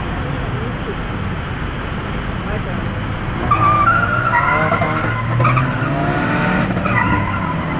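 Car engines idle in slow traffic with a low, steady rumble.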